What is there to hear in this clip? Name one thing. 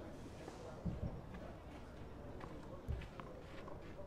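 A tennis ball bounces on the ground before a serve.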